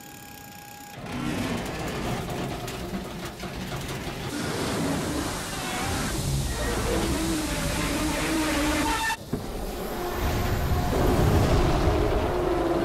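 A huge machine rumbles and clanks heavily as it moves.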